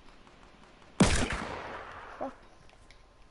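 A single gunshot rings out and echoes away.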